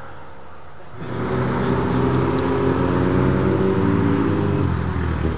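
A car engine rumbles deeply as the car pulls away slowly.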